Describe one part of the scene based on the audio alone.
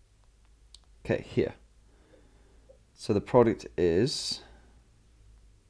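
A man speaks briefly nearby.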